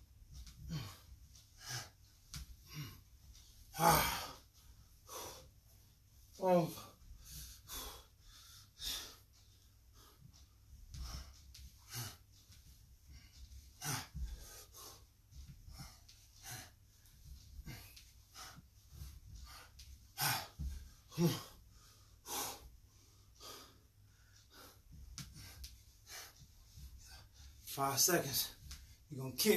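Feet stomp and shuffle on a floor in quick steps.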